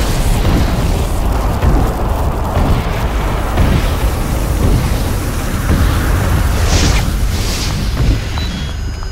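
A fire roars loudly and crackles.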